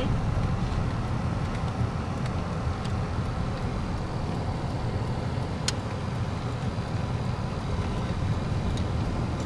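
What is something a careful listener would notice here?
A car engine hums steadily with road rumble from inside a moving car.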